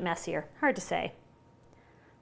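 A middle-aged woman speaks calmly and clearly into a microphone.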